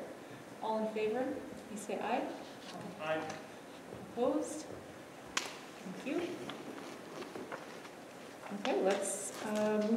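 A woman speaks calmly through a microphone in a large echoing room.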